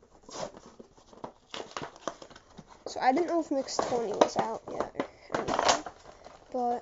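Cardboard tears and rips as a package is pulled open.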